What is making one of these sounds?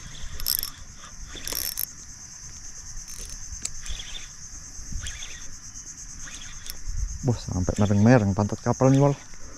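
A fishing reel whirs and clicks as line is wound in.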